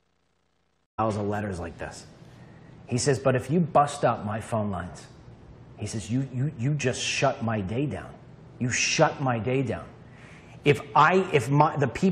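A man speaks calmly and clearly into a close microphone.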